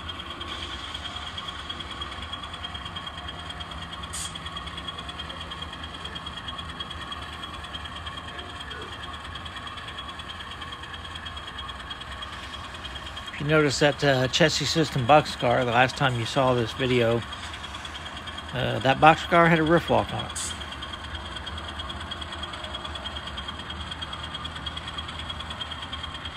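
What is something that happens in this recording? A model train rolls slowly along the track with a soft, steady hum.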